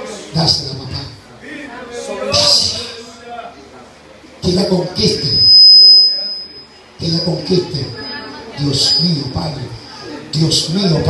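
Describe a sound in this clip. A man prays aloud with fervour, close by.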